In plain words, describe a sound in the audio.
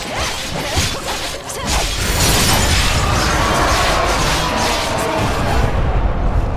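A huge beast stomps heavily with deep thuds.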